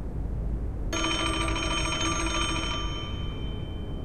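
A telephone rings with a bright, jangling tone.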